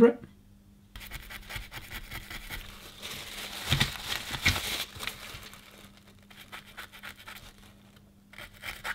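A stiff brush scrubs rapidly against a hard surface.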